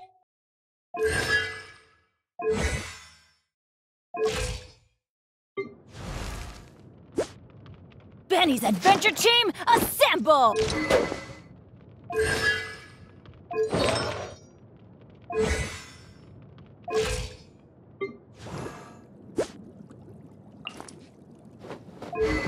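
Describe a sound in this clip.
Soft whooshing game sounds play as menu pages switch.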